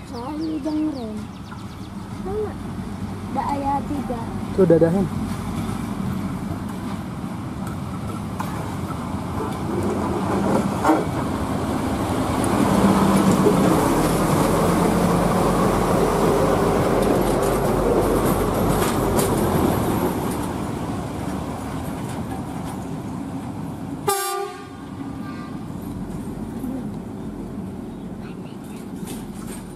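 A heavy diesel engine rumbles as rail machines roll past close by.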